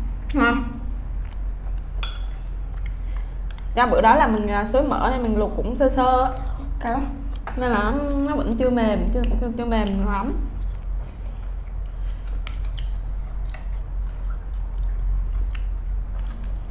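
Spoons and chopsticks clink against bowls.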